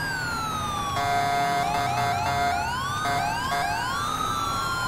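A police siren switches to quick, choppy blasts for a moment.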